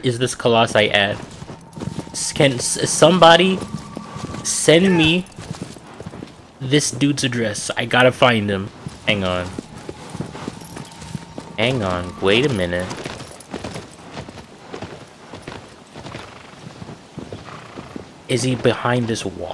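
A horse's hooves thud in a gallop over grass.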